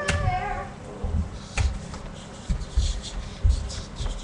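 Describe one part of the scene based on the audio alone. A wooden chair scrapes and knocks on the floor.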